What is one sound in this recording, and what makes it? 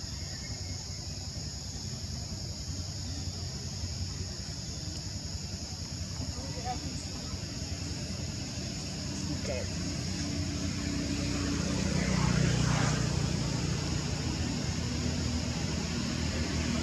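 Small monkeys scuffle and rustle through grass.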